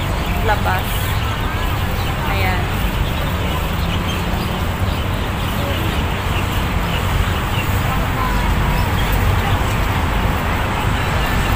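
A crowd chatters in a busy, noisy open market.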